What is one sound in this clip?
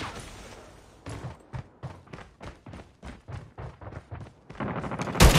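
Footsteps thud in a quick, even rhythm.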